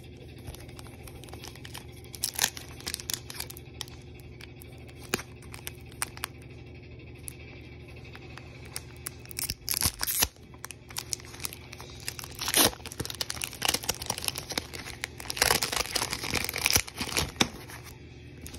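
A foil wrapper crinkles and tears as hands pull it open.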